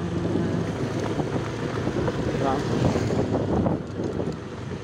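A motorbike engine hums nearby and fades away.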